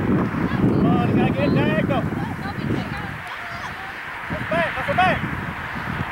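Young women shout to each other across an open field, heard from a distance.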